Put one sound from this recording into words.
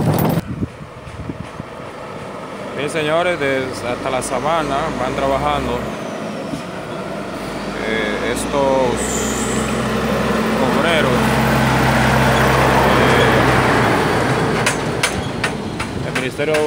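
A heavy truck engine rumbles as it approaches and passes close by.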